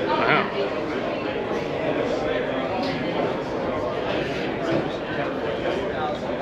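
Many voices of men and women chatter at once in a busy hall.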